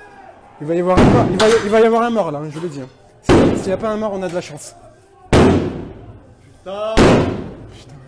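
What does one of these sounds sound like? Loud bangs strike a glass door.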